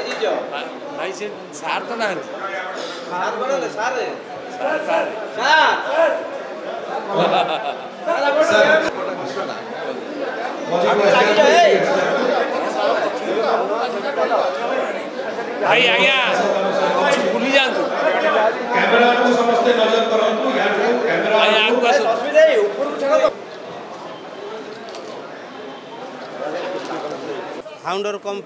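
A crowd of men chatter and call out loudly in an echoing room.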